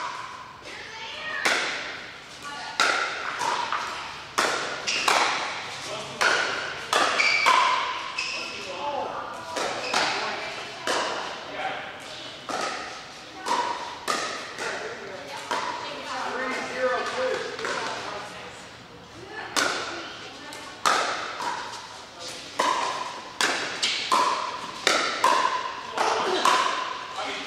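Paddles strike a plastic ball with sharp, echoing pops, again and again in a large hall.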